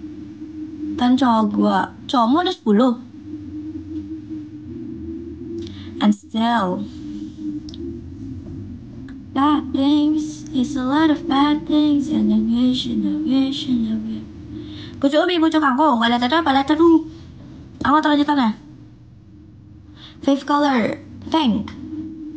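A young woman sings close to a microphone in short bursts.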